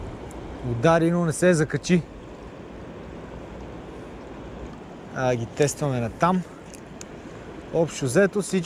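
Water ripples gently over stones close by.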